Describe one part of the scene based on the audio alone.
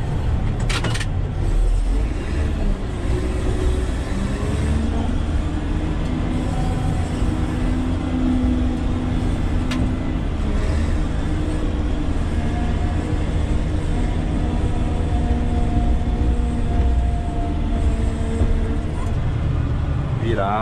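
A heavy diesel engine rumbles steadily from inside the cab.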